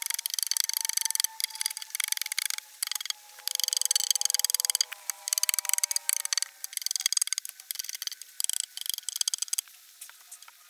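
A knife scrapes and shaves wood in quick strokes.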